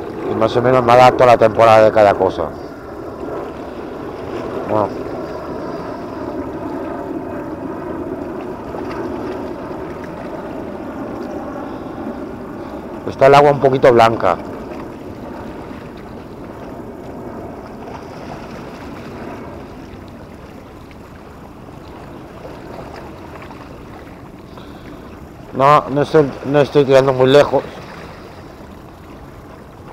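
A fishing reel whirs softly as its handle is cranked.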